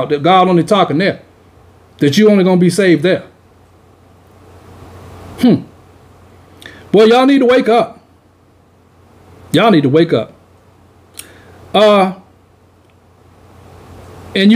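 A man speaks calmly and close into a microphone, in short phrases with pauses.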